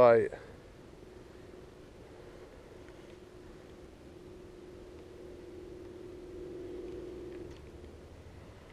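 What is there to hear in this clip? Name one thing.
A fishing reel whirs softly as line is wound in.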